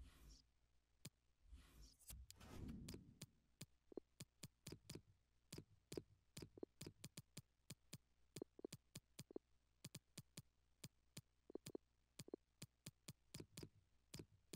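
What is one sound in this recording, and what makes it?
Short menu clicks tick again and again.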